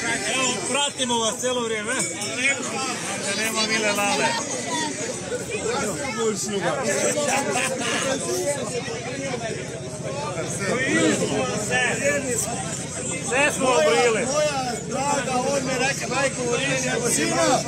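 An elderly man talks loudly with animation close by.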